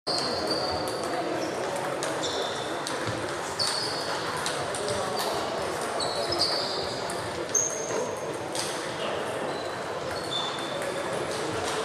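Sports shoes squeak sharply on a wooden floor.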